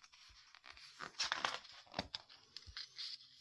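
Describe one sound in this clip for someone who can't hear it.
A page of a book rustles as it is turned.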